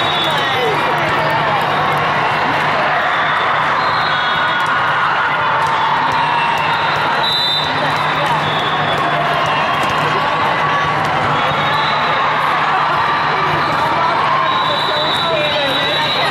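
A volleyball thuds against hands.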